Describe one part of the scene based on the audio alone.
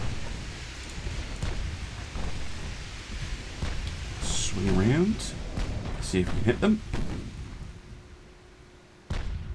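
Sea water splashes and rushes along a moving ship's hull.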